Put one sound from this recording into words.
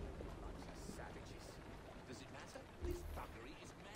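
A horse-drawn carriage rattles past over cobblestones.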